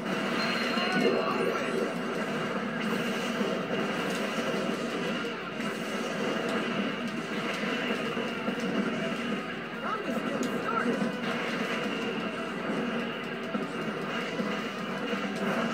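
Game explosions and blasts boom through a television speaker.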